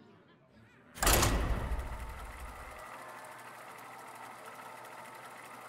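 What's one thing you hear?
A game plays a steady mechanical whirring hum.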